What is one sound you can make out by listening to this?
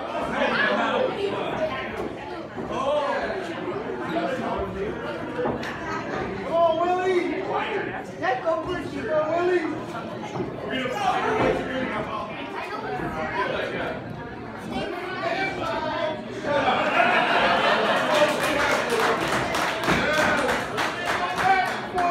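A crowd shouts and chants loudly in an echoing hall.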